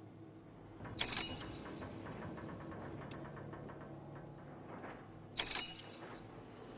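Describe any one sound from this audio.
Menu chimes sound with short electronic bursts.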